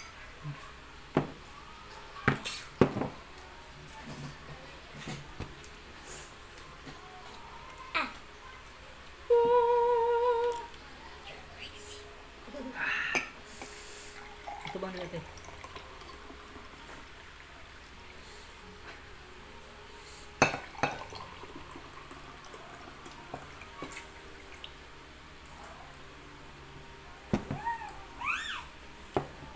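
Dishes and glasses clink and knock on a table.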